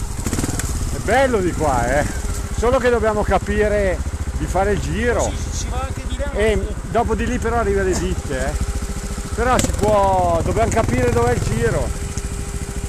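A man talks nearby, loudly over the engine.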